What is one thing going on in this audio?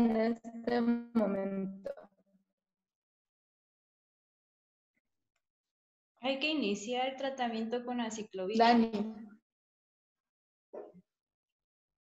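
A young woman speaks calmly over an online call, pausing between phrases.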